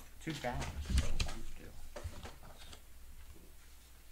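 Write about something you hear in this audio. Small plastic game pieces click and tap against a tabletop.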